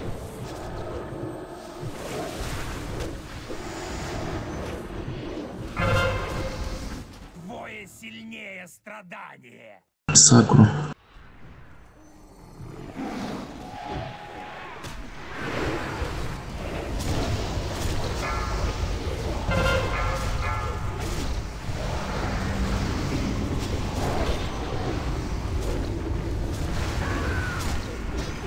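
Spell blasts crackle and boom in a hectic battle.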